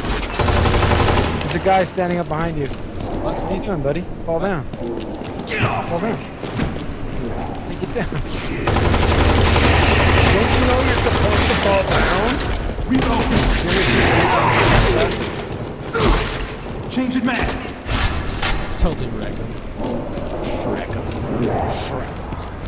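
Gunshots crack rapidly in a game.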